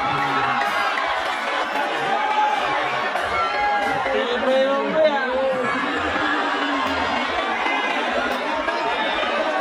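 A large crowd cheers and shouts loudly in an echoing arena.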